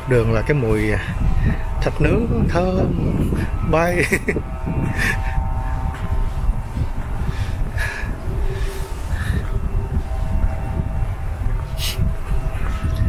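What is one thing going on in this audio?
A middle-aged man talks calmly close by, outdoors.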